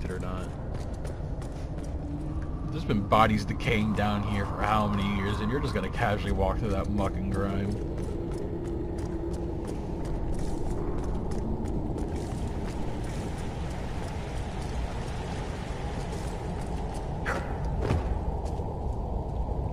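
Armoured footsteps clank on a stone floor.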